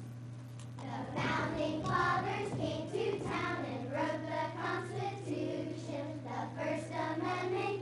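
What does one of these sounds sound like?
A chorus of children sings together in a large echoing hall.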